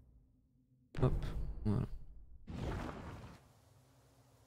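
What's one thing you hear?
A man speaks casually into a close microphone.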